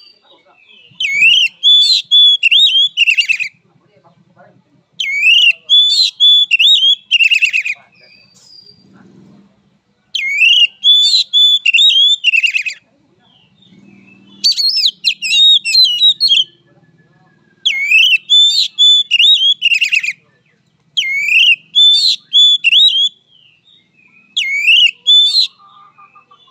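A songbird sings loud, clear whistling phrases in repeated bursts, close by.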